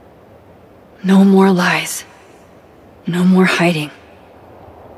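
A young woman speaks calmly and firmly, close by.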